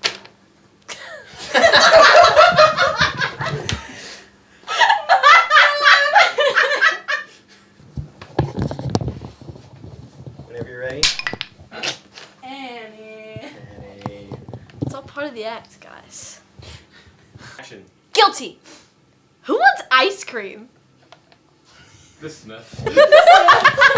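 A young woman laughs loudly and heartily close by.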